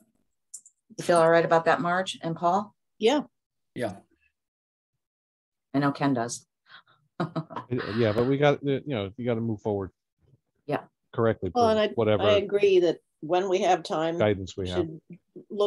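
A middle-aged woman talks with animation over an online call.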